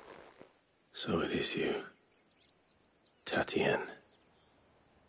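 A man speaks quietly and slowly, close by.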